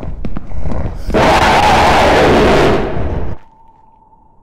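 A man shouts loudly into a close microphone.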